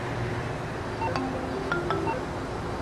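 A phone rings with a short electronic tune.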